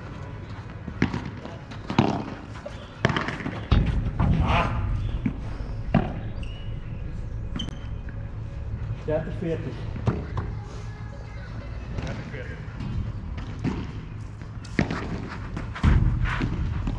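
Padel rackets strike a ball with sharp pops.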